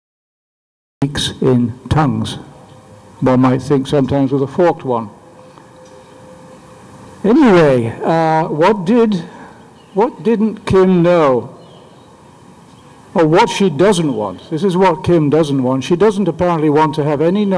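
An older man speaks calmly through a microphone and loudspeakers outdoors.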